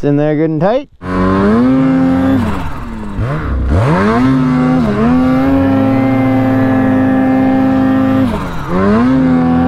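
A snowmobile engine roars and revs up and down nearby.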